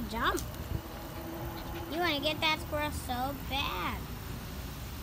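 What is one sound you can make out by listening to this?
A small dog barks and whines excitedly up close.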